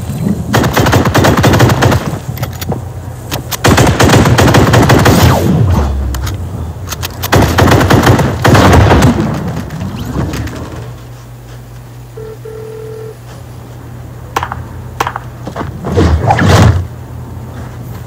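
Video game gunfire and blasts crackle from a small console speaker.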